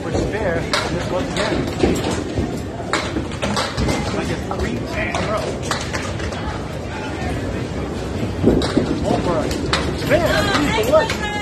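Bowling pins crash and clatter in a large echoing hall.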